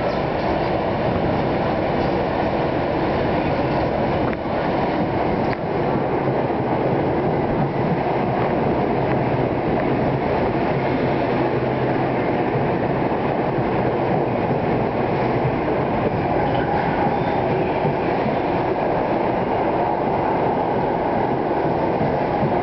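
Steel wheels rumble and clatter on the rails.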